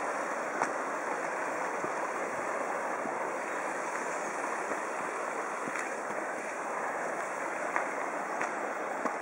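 A stream rushes steadily over rocks below.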